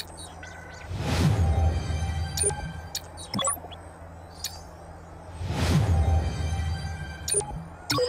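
A game reward fanfare swells with a whooshing burst.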